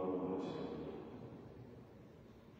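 A man speaks calmly through a microphone in an echoing hall, then falls silent.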